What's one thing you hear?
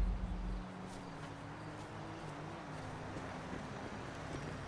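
Footsteps thud quickly on grass and dirt.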